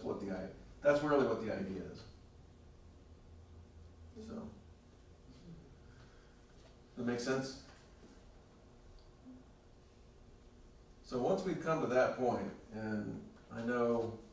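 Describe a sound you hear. A middle-aged man speaks calmly through a lapel microphone, with pauses.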